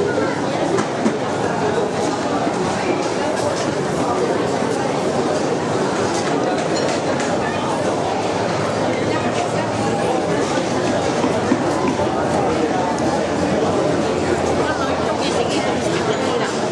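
A large crowd chatters in an echoing hall.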